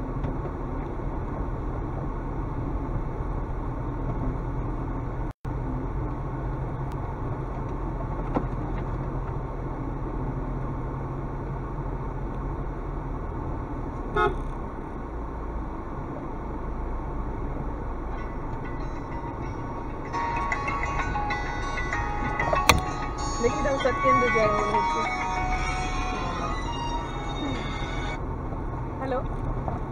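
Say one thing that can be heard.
A vehicle engine rumbles steadily as it drives slowly.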